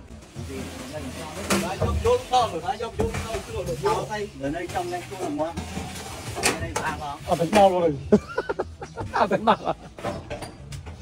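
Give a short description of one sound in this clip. Several men talk to each other with animation nearby.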